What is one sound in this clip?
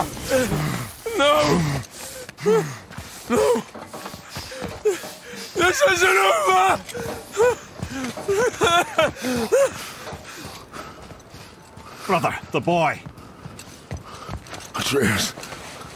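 A man speaks in a strained, pained voice.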